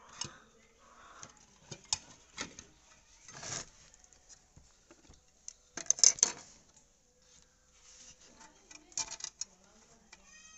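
Plastic and metal parts clatter and knock as they are handled.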